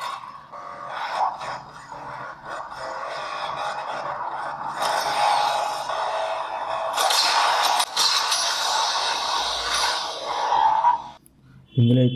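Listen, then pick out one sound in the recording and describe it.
A racing game plays engine roars and effects through a phone speaker.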